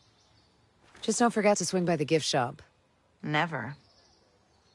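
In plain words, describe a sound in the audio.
A woman answers in a calm, friendly voice, close by.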